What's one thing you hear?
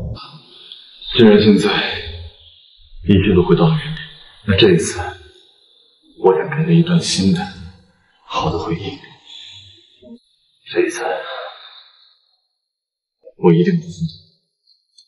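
Another young man answers in a quiet, earnest voice, close by.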